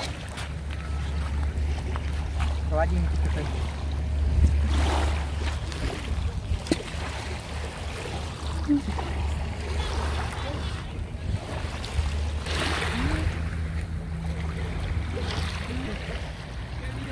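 Small waves lap gently at a pebble shore.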